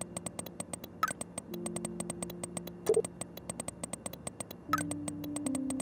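A short electronic message tone chimes a few times.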